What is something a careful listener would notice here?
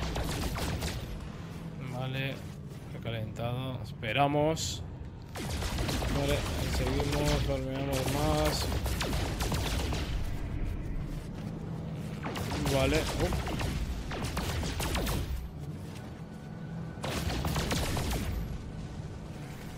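A spaceship engine drones steadily.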